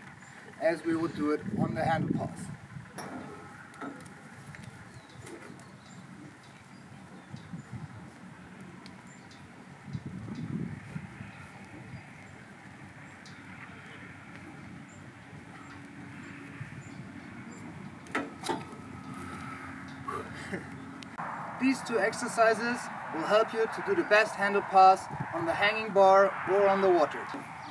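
A young man talks calmly to the listener, close by.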